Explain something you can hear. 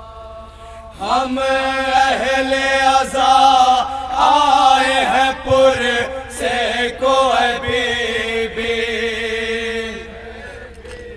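A group of young men chant loudly along in chorus.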